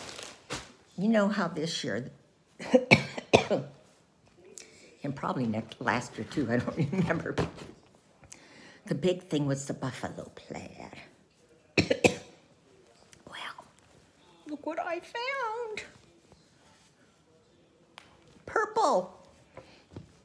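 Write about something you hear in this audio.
An older woman talks calmly and close by, with pauses.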